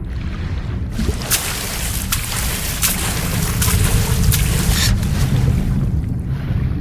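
Water sloshes and splashes as a swimmer moves along the surface.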